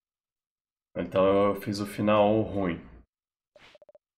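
A young man speaks briefly and loudly into a close microphone.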